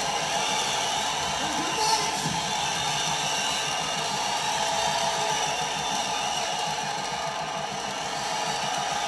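Loud rock music plays from a spinning vinyl record.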